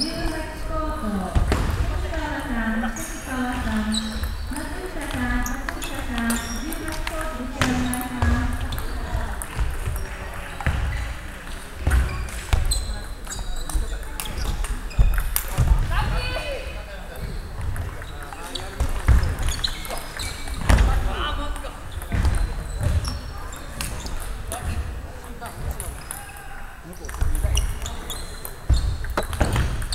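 Shoes squeak and thump on a wooden floor.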